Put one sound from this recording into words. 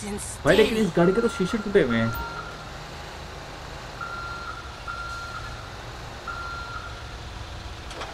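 A truck's reversing alarm beeps in short bursts.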